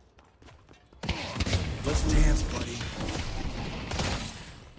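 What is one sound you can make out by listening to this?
Laser gunfire zaps rapidly in a game.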